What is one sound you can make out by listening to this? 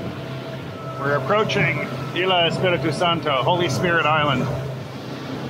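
A man talks over the engine noise.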